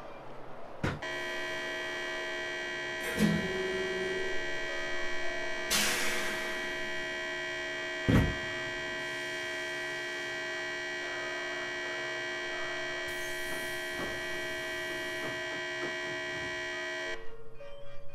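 A standing electric train hums steadily.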